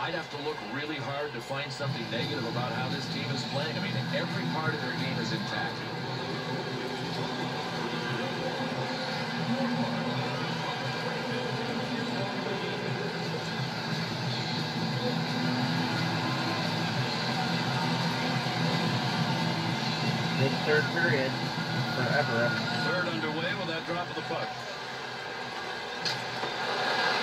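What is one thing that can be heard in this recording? Ice hockey video game sound plays through television speakers.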